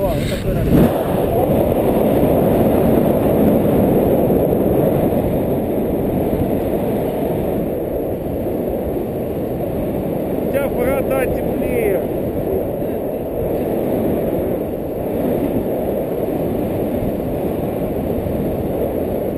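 Wind rushes and buffets the microphone in flight under a paraglider.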